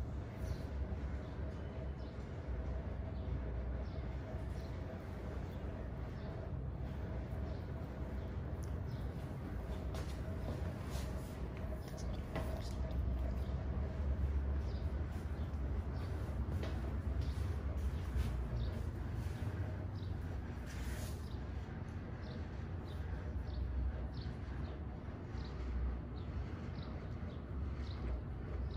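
Fingers rub and scratch through hair close by.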